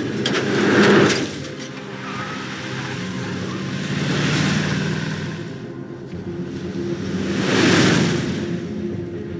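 A truck whooshes past close by.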